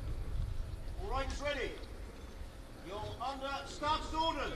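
A man calls out loudly nearby.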